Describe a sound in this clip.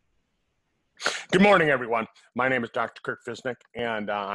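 An older man speaks calmly through a headset microphone over an online call.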